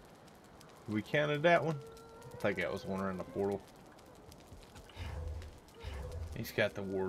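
A middle-aged man speaks casually and close into a microphone.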